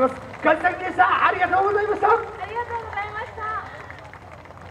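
A man chants loudly through loudspeakers, echoing outdoors.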